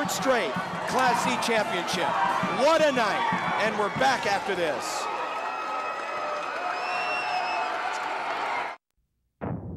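Young women shriek and cheer excitedly close by.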